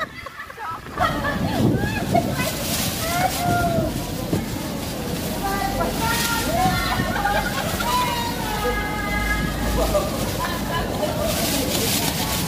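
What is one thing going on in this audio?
Several women shout and argue in a large echoing hall.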